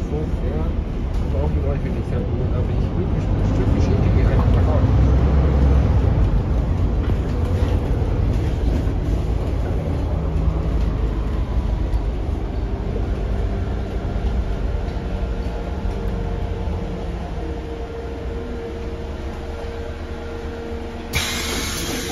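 A bus engine rumbles steadily as the bus drives and slows.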